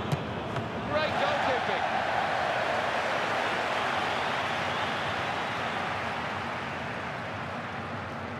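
A stadium crowd roars and cheers, then slowly fades.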